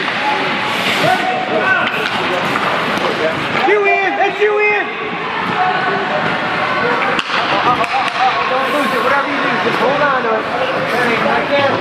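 Young players shout and call out to each other in a large echoing rink.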